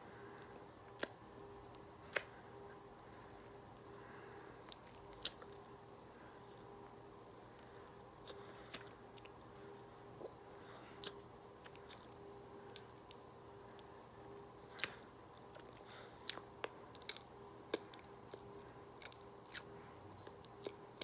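A woman crunches on a chalky block close to a microphone.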